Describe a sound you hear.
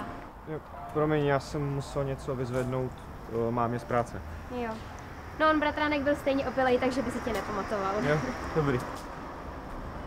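A young woman talks.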